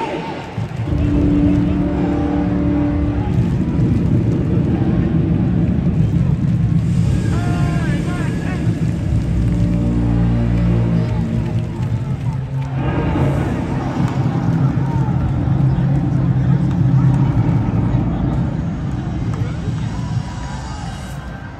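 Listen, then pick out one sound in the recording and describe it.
A stadium crowd sings together loudly.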